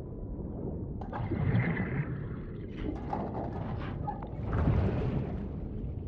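A metal chest lid hisses and clanks open.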